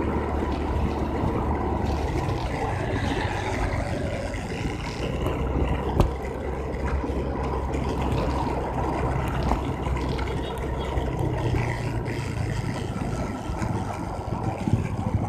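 A motorbike engine hums steadily while riding.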